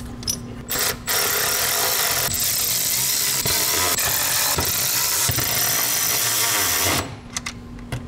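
A cordless power tool whirs steadily.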